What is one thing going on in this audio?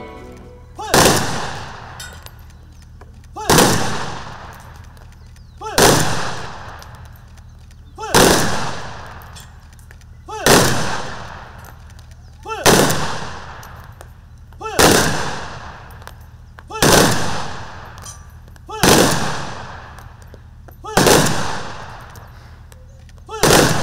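Rifles fire volleys of shots in unison, each echoing outdoors.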